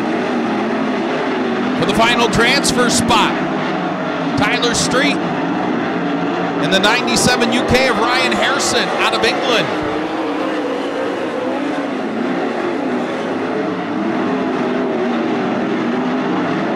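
Racing car engines roar loudly.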